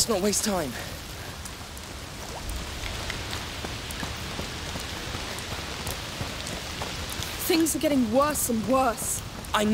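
Footsteps run over wet ground.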